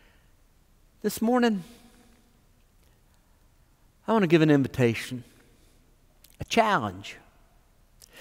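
An older man speaks calmly into a microphone in short phrases, with pauses.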